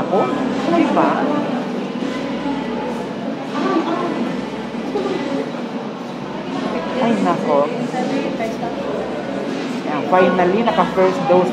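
A woman talks close to a handheld phone microphone, muffled by a mask.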